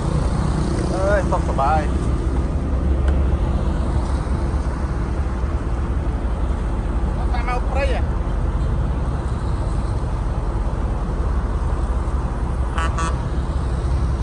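A man talks near the microphone.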